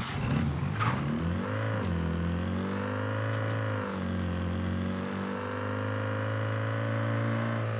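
A forklift engine hums steadily as it drives.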